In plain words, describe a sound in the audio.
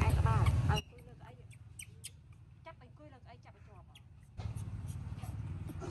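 A baby monkey squeaks softly close by.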